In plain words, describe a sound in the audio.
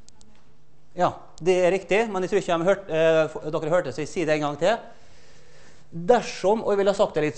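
A man lectures with animation in a large echoing room.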